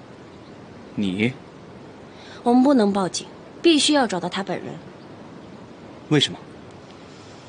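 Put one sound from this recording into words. A young man asks a short question.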